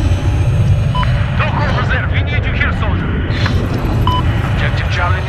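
A warning alarm beeps.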